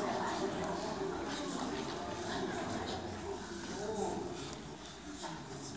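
A flute plays softly in a large echoing hall.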